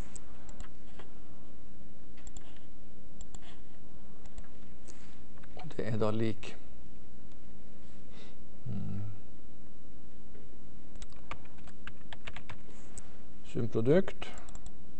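Computer keys click softly.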